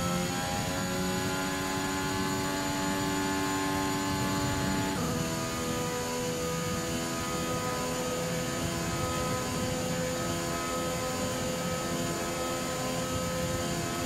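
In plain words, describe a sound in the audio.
A racing car engine screams at high revs, climbing in pitch and dropping briefly at a gear change.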